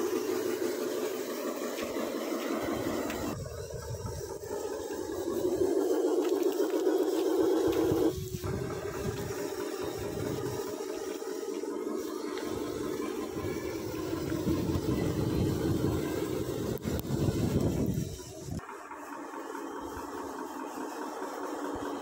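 A small toy truck's electric motor whirs steadily.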